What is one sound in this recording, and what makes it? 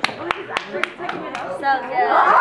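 Feet thud sharply on a wooden stage.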